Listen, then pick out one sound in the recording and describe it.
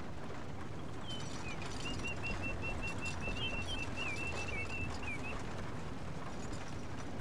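Horses' hooves clop along a dirt track.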